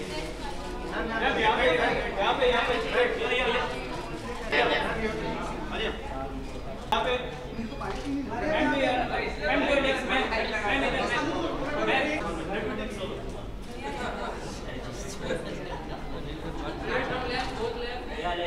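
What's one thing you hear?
A crowd of men and women chatter nearby in a busy room.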